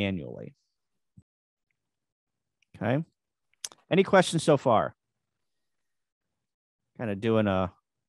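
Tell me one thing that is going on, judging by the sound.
A man speaks calmly through a microphone, in short phrases.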